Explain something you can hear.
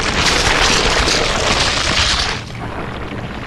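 A huge creature groans and roars as it collapses.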